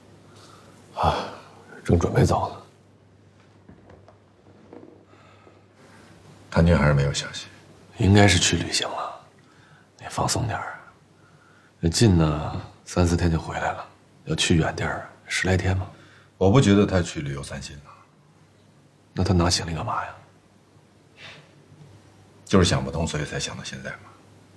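A second man answers in a low, calm voice nearby.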